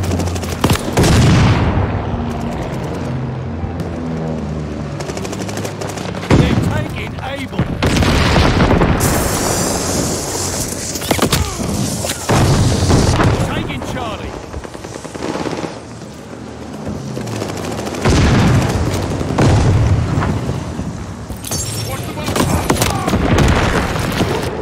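Gunshots fire in rapid bursts.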